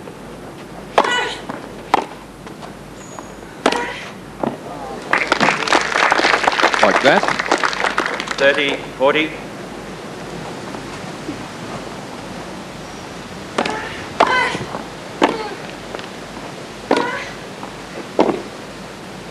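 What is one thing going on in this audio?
A tennis ball is struck hard with rackets, in sharp pops.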